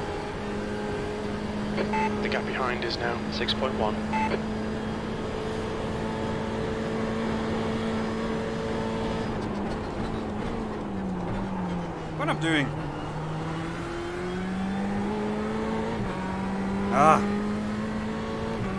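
A racing car engine drones steadily, its pitch dipping and then climbing again.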